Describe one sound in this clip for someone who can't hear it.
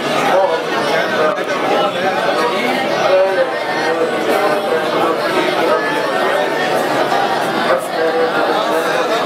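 Many voices of men and boys recite aloud together in a murmuring chorus.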